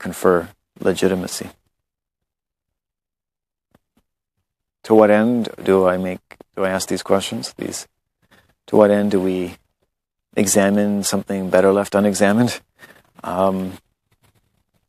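A man speaks calmly, close up, in short bursts with pauses.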